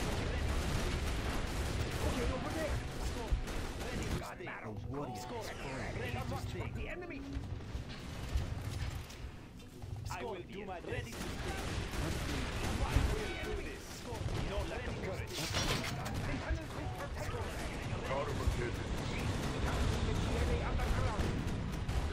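Tank guns fire in sharp bursts.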